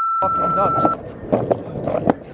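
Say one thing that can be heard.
Skateboard wheels roll and clatter over concrete pavement.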